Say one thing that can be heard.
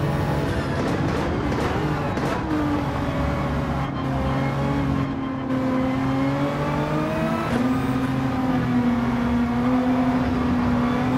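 A racing car engine roars loudly, its pitch rising and falling as it shifts gears.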